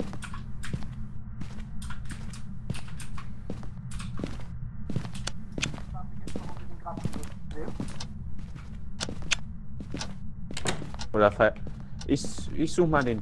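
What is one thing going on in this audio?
Footsteps thud steadily across a floor.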